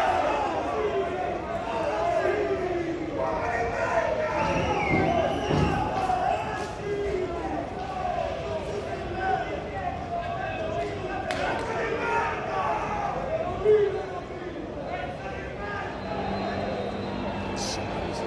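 A crowd of angry football fans chants and shouts outdoors, heard from a distance.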